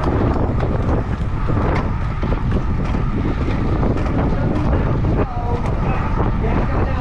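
Wind roars loudly past a moving bicycle.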